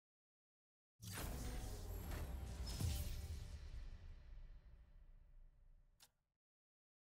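A loud game jingle booms and rings out, slowly fading.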